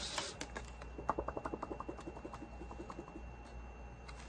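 Paper pages flick quickly past a thumb with rapid soft ticks.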